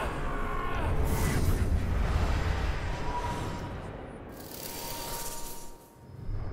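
A ghostly whoosh swells and fades.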